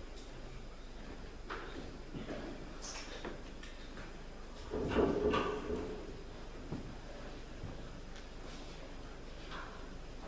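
Footsteps shuffle slowly in a large echoing hall.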